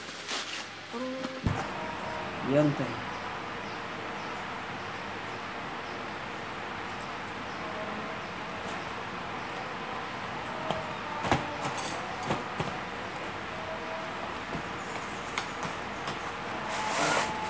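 A cardboard box scrapes and taps on a table.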